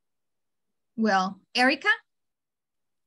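A woman speaks a few words over an online call.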